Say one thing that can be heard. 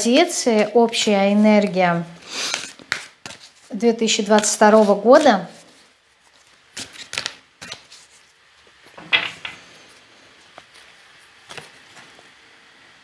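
Playing cards shuffle and flick in a woman's hands.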